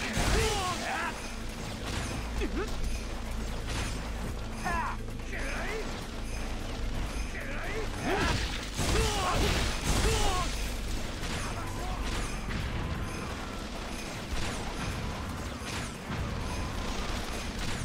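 Blades clash and slash in quick, sharp strikes.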